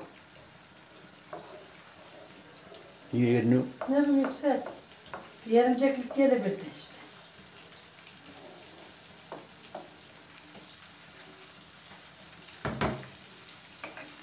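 A spoon scrapes against a frying pan.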